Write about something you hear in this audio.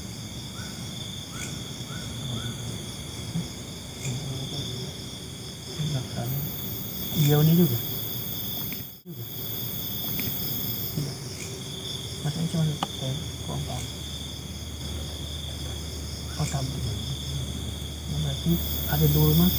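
Young men talk with animation close by.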